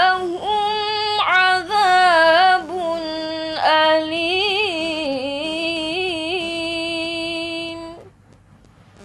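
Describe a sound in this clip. A young girl chants a recitation in a long, drawn-out melody, close to a microphone.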